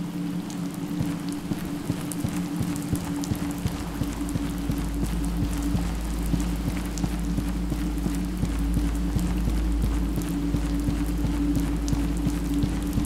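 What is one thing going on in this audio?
Footsteps tread steadily on stone and hard ground.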